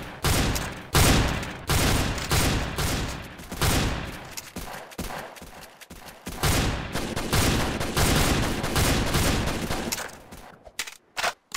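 A rifle fires rapid, loud bursts of shots.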